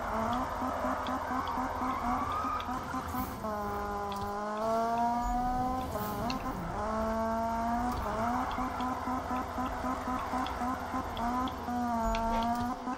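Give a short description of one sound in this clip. A car engine roars at high revs and shifts gears up and down.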